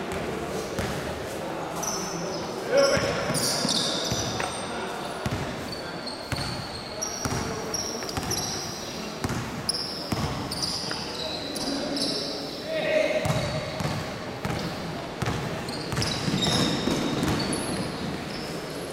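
Young players shout and call out to each other across an echoing hall.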